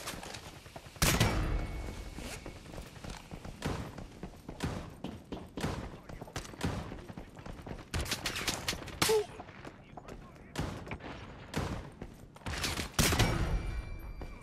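Gunshots crack loudly and echo.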